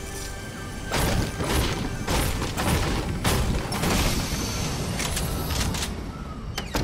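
A pickaxe smashes repeatedly into wood.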